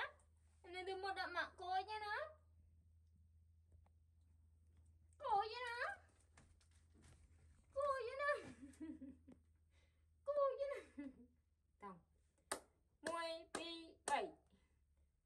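A young woman speaks close by in a high, playful voice.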